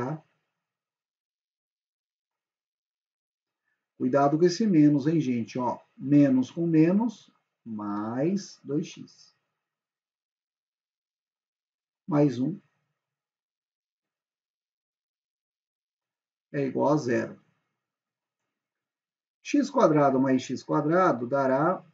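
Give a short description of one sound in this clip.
A young man speaks calmly and closely into a microphone, in short phrases with pauses.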